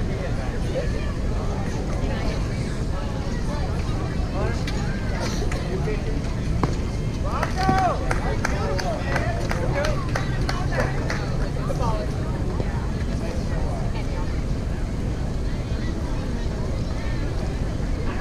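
A crowd of spectators call out and chatter outdoors.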